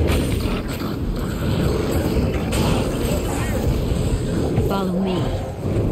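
Magic spells crackle and burst against monsters.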